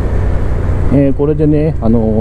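A motorcycle engine revs up sharply.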